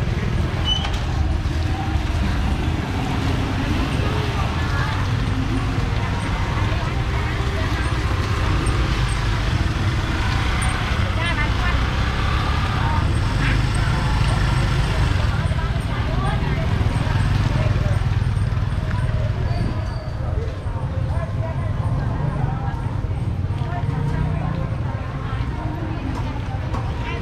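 People chatter in a busy street market nearby.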